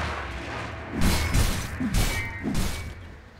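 Video game weapons clash and strike during a fight.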